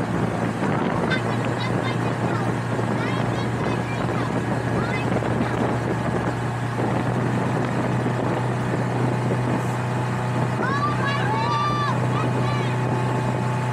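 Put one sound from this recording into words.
A young woman talks nearby over the engine.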